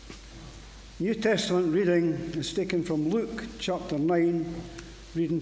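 An elderly man speaks calmly into a microphone in an echoing room.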